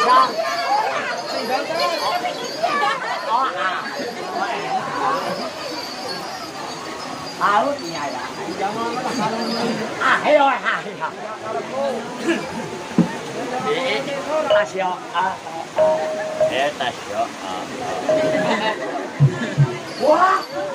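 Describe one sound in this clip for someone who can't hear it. A crowd chatters and calls out loudly outdoors.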